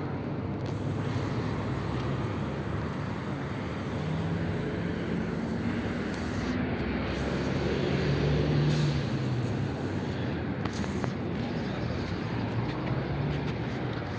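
Cars pass close by with a rising and fading whoosh.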